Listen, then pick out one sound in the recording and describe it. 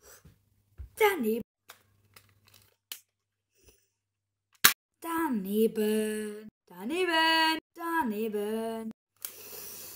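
A young boy speaks close up with animation.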